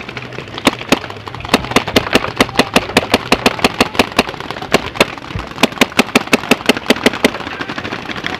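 A paintball marker fires rapid bursts of shots up close.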